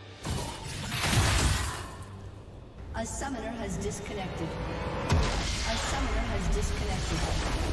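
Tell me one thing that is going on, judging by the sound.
Magic spells crackle and blast in quick bursts.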